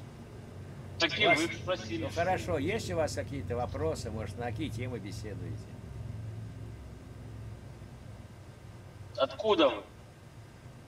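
A young man talks cheerfully over an online call.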